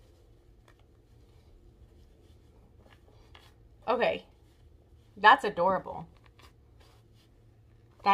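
Fabric rustles as a cap is pulled on.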